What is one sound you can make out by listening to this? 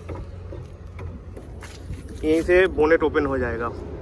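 A car tailgate latch clicks and the tailgate swings open.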